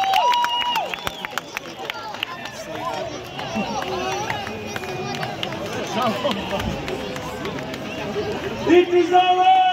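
A crowd of spectators murmurs outdoors.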